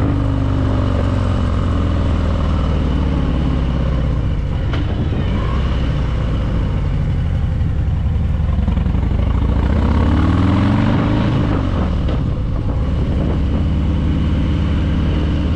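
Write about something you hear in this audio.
Wind rushes past on the open road.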